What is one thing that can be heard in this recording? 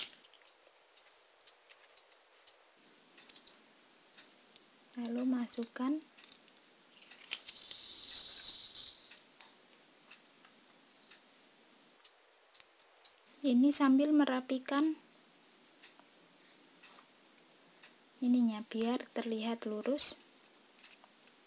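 Yarn rustles and a small plastic piece clicks softly as it is handled.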